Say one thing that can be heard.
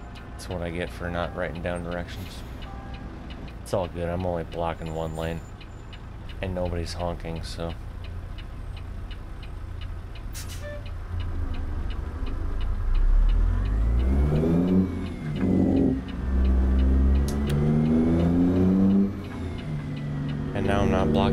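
A truck engine idles with a low rumble.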